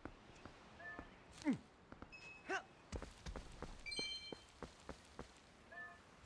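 Footsteps tread lightly on grass.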